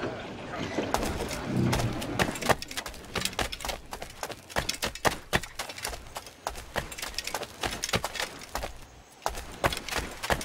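Footsteps run quickly on stone.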